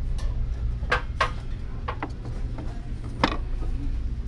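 A ceramic cup clinks against a glass shelf.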